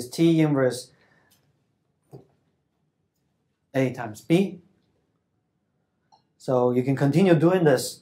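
A man lectures calmly into a microphone, in short bursts with pauses.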